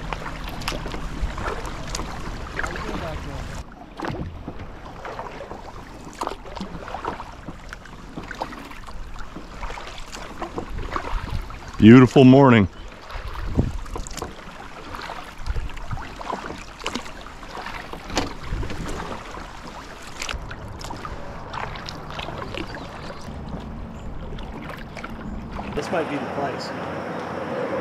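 A paddle dips and splashes in calm water.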